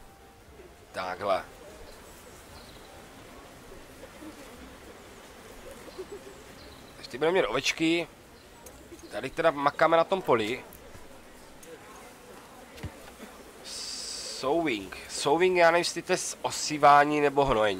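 A man talks casually into a microphone, in short bursts.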